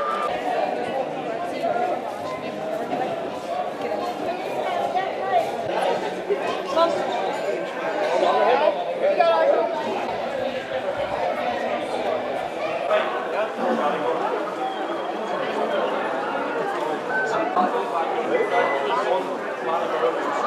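A crowd chatters in an echoing indoor space.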